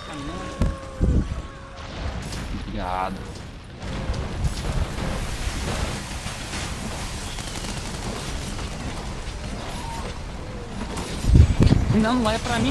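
Fiery blasts boom and rumble.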